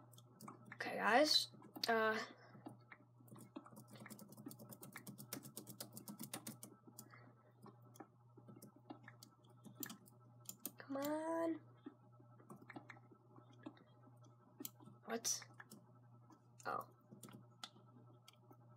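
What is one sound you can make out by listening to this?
Fingers tap and click on a keyboard.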